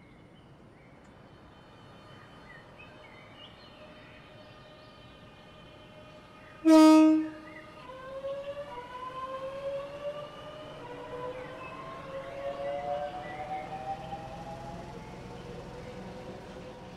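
A train rumbles along the rails as it pulls in.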